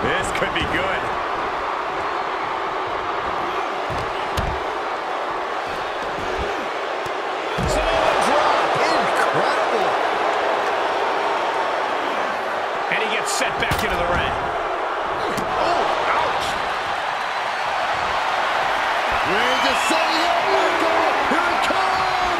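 A large arena crowd cheers and roars steadily.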